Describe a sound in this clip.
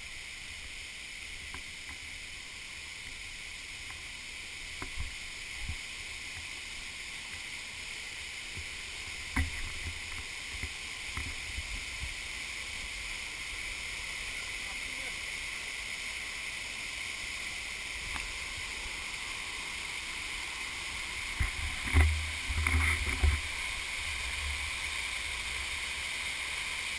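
A waterfall rushes and splashes steadily nearby.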